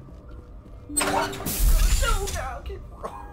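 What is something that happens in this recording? A sliding door opens with a hiss.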